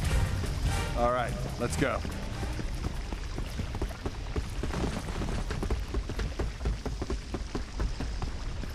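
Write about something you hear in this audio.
Molten lava rumbles low and steadily.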